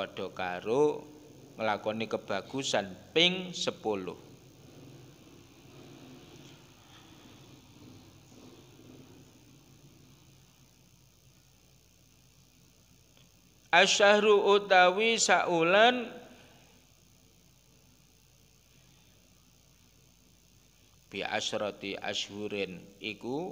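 An elderly man recites in a chanting voice through a microphone, with pauses between phrases.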